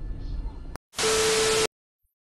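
Loud static noise hisses with a steady tone.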